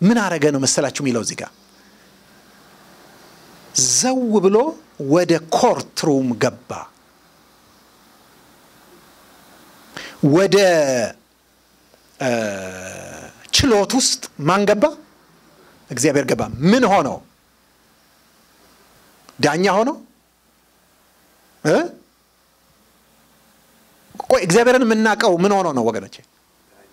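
A middle-aged man preaches with animation into a microphone, in bursts with pauses.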